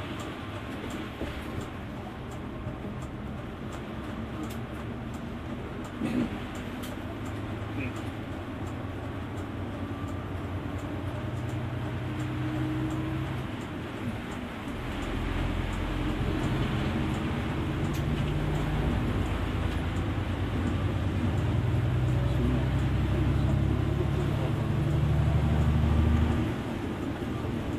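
A bus engine hums and rumbles steadily, growing louder as it speeds up.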